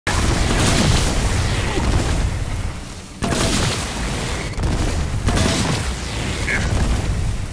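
Explosions boom loudly, one after another.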